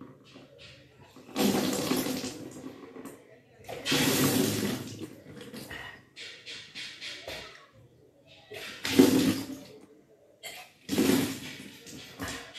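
Liquid splashes down as a young woman spits it out.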